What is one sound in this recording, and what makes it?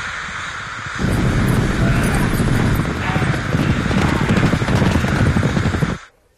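Horses gallop over grass.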